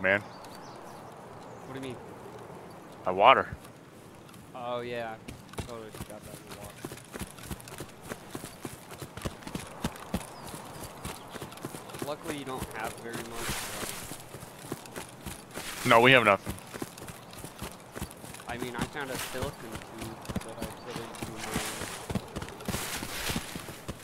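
Footsteps rustle steadily through tall grass and brush.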